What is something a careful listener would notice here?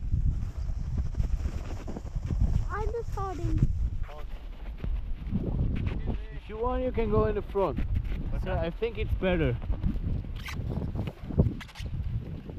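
Sled runners scrape and hiss over snow.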